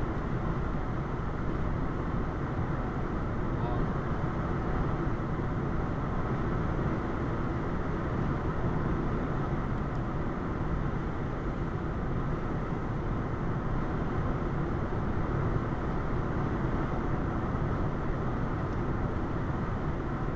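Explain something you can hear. A car's engine hums steadily inside the cabin.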